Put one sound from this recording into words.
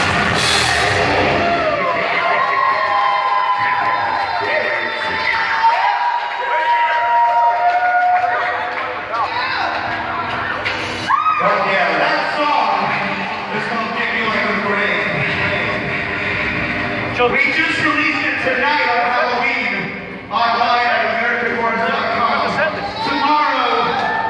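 A crowd talks and shouts over loud music.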